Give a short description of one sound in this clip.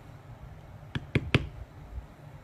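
A mallet strikes leather with a few sharp knocks.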